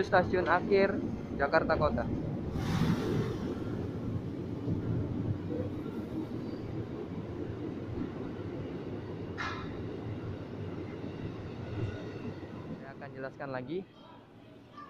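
A train rumbles along the platform as it pulls away.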